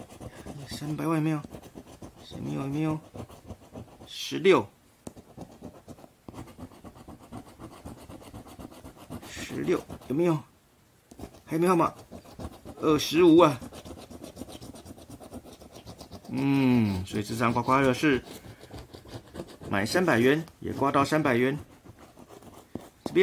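A coin scrapes and scratches across a card.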